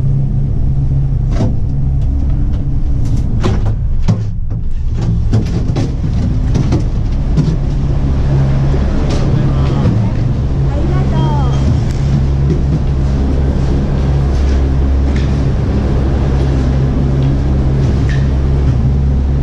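Machinery hums and rumbles steadily.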